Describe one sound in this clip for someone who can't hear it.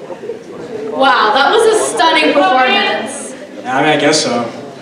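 A man sings through a microphone in a large hall.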